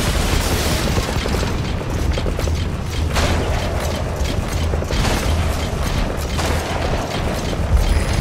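Grass rustles and swishes as a robotic walker pushes through it.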